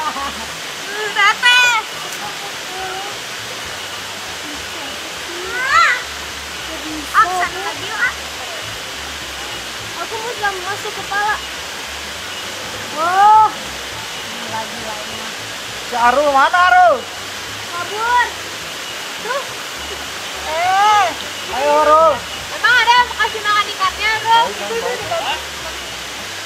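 Teenagers call out to each other outdoors.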